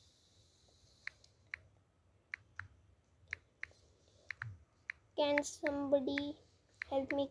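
A phone keyboard clicks softly with each tap.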